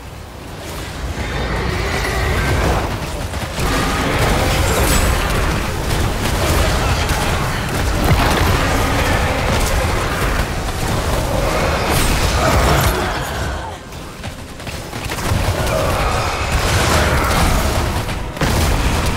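Weapons clash and thud.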